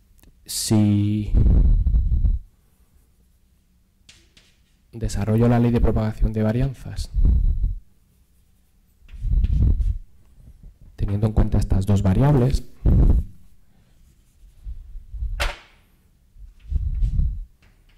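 A man lectures through a close microphone, speaking calmly in bursts with pauses.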